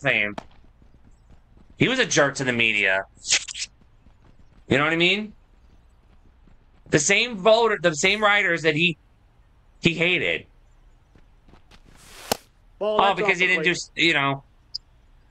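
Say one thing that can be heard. A man talks with animation into a close microphone, in short bursts.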